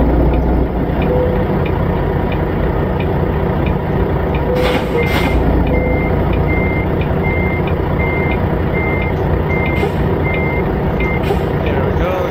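A truck's reversing alarm beeps at an even pace.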